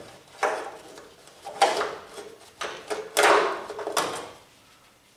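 Metal clanks and bangs sharply as a car door is worked by hand.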